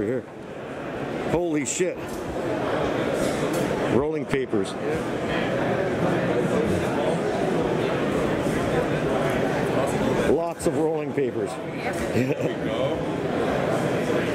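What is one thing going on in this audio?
A crowd murmurs and chatters steadily in a large hall.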